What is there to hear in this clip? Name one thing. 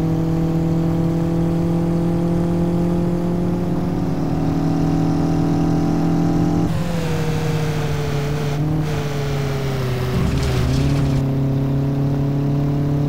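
A car engine hums steadily at speed, shifting pitch as it changes gear.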